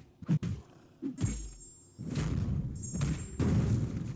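A heavy body slams onto the ground.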